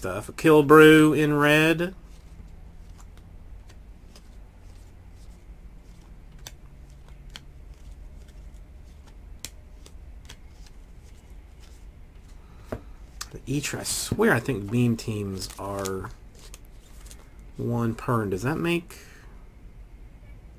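Trading cards rustle and flick softly as they are sorted by hand.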